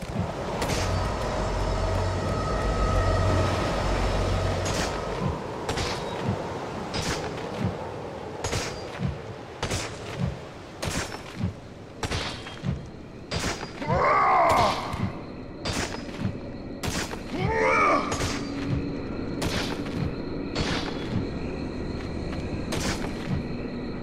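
Heavy footsteps thud on stone, walking briskly.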